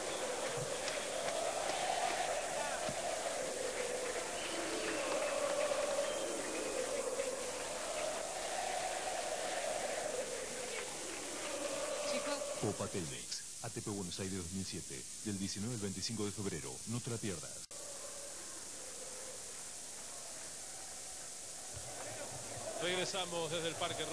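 A large crowd murmurs and chatters in a big open stadium.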